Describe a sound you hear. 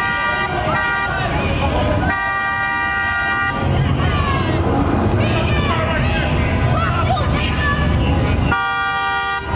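A crowd of people shouts and chatters outdoors.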